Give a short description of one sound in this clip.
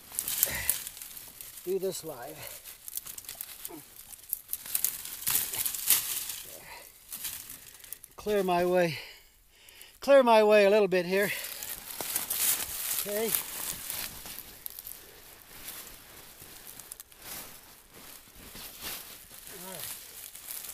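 Dry leaves rustle and crunch under hands.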